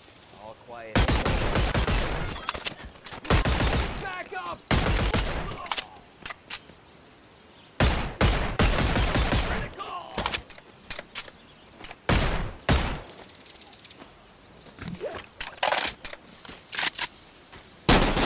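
A pistol fires shots in quick bursts.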